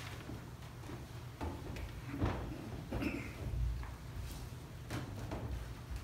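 Footsteps shuffle on a wooden floor.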